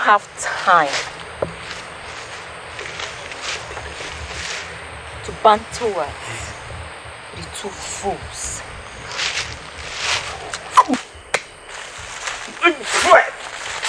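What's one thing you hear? A young woman speaks close by, with emotion and a pleading tone.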